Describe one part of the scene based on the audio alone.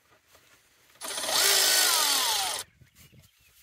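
A cordless power tool whirs in a short burst.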